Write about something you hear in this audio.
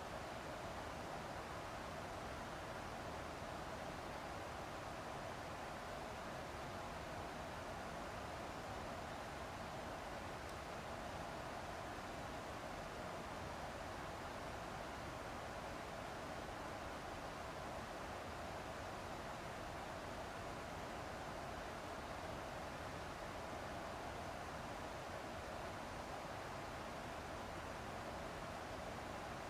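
Jet engines roar steadily from inside a cockpit.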